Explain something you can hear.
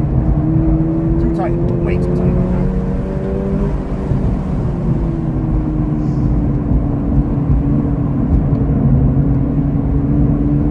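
A car engine roars steadily at high revs, easing off into a lower drone.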